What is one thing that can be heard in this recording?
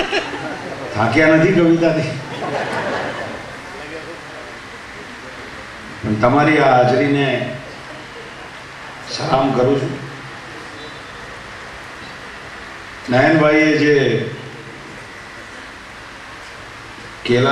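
A middle-aged man speaks through a microphone and loudspeakers in short bursts, pausing between phrases.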